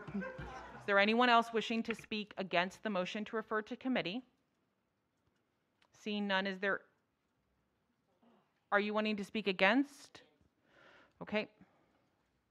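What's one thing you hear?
A woman speaks calmly through a microphone, in short bursts with pauses.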